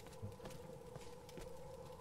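Flames crackle in a metal barrel.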